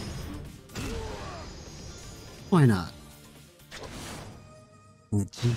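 Heavy blows land with thuds and whooshes.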